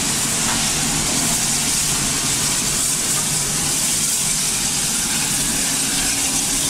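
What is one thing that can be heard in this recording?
A steam locomotive chuffs steadily as it rolls slowly past.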